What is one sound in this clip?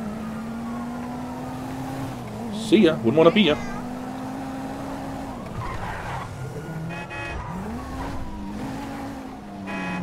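A car engine hums steadily and changes pitch as the car drives.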